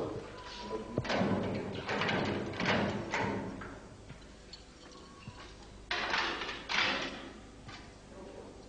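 Keys jingle and a lock clicks open.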